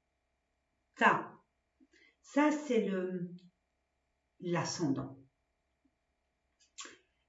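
A woman speaks with animation, close to a microphone, in short bursts with pauses.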